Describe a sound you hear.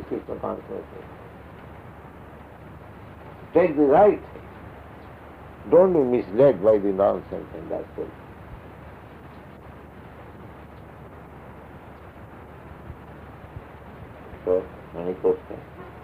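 An elderly man speaks slowly and calmly, in bursts with long pauses, heard through an old recording.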